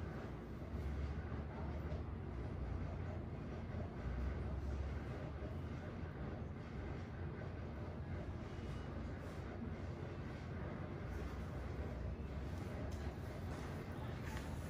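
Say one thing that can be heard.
Fingers rub and rustle through hair on a scalp, close by.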